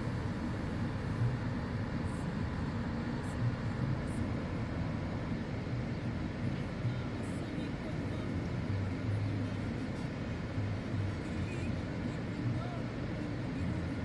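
A car engine idles with a low, steady rumble, heard from inside the car.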